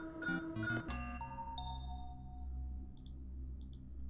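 An emergency alarm chimes in short ringing notes that fade away.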